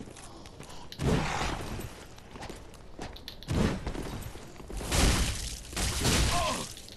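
Blades swing and clash in a fight.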